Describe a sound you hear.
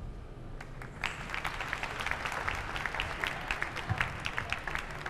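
An audience claps and applauds in a large hall.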